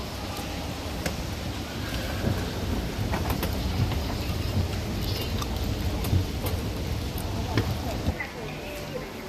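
An escalator rumbles and hums steadily close by.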